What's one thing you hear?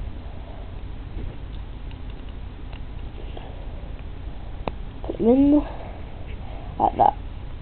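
Small plastic toy pieces click softly as they are handled.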